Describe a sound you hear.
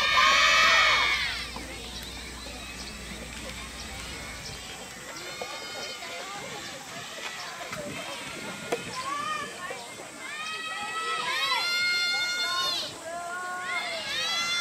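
Young women shout loudly from across the court.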